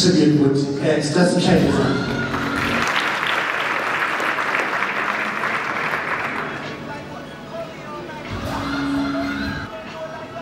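A woman sings into a microphone, heard through loudspeakers in a large hall.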